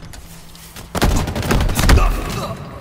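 A heavy blow strikes with a loud crackling burst.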